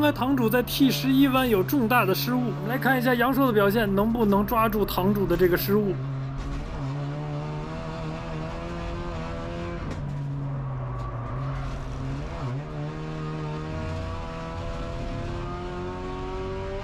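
A race car engine roars and revs up through the gears.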